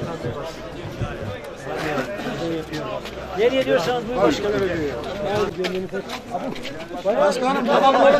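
Men talk loudly in a bustling crowd outdoors.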